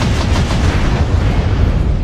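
A heavy explosion blasts up close.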